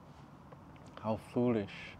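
A young man speaks close to a clip-on microphone.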